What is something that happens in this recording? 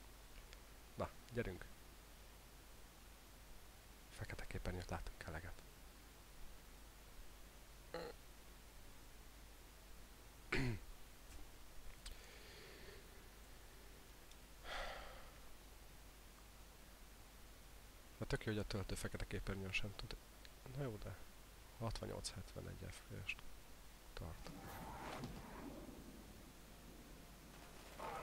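A man speaks now and then into a close microphone, in short bursts.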